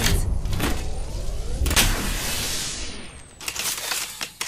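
An electric device charges up with a crackling hum.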